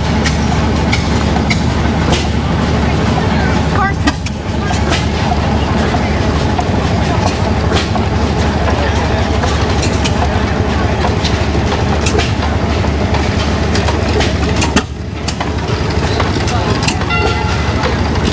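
An old stationary engine pops sharply now and then.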